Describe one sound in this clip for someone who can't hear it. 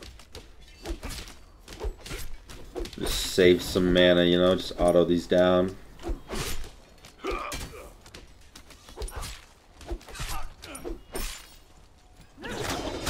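Weapon strikes and magic effects clash in a video game.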